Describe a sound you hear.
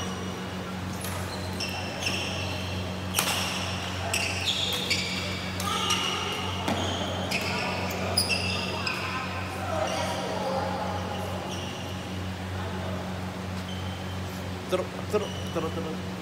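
Shuttlecocks are struck sharply by rackets.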